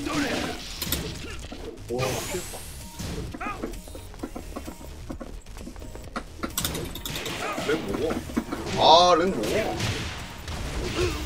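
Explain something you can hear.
Punches and kicks land with sharp thuds in a fighting game.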